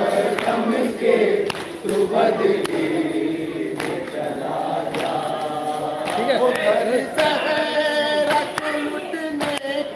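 Men strike their chests in a steady beat.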